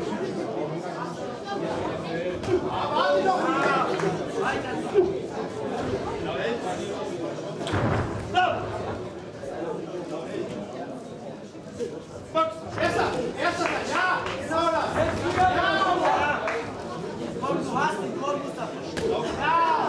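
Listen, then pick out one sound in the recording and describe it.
Boxing gloves thud against bodies.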